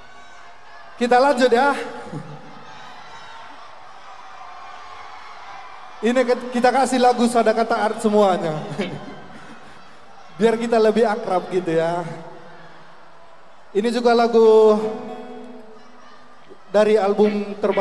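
A man speaks loudly and with animation through a microphone in a large echoing hall.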